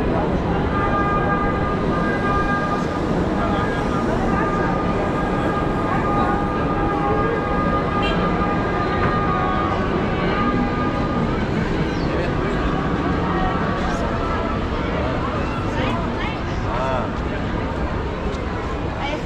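A busy crowd murmurs and chatters all around.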